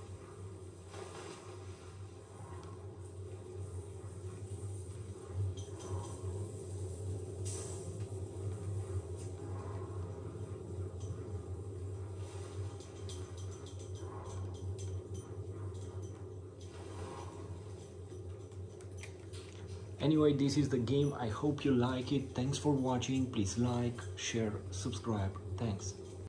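A low, steady electronic drone plays from a television.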